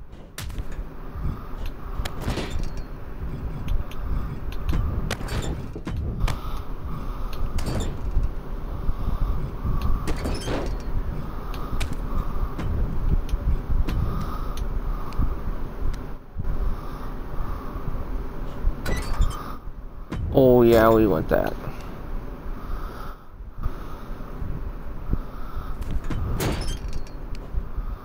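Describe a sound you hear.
Heavy blows thud as wrestlers strike each other.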